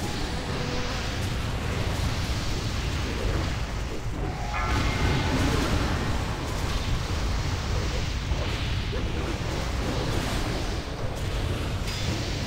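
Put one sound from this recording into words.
Spell effects whoosh and crackle in a fantasy battle.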